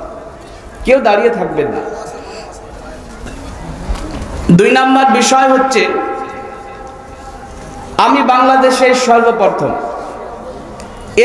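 A man preaches loudly and with fervour into a microphone, heard through loudspeakers with an outdoor echo.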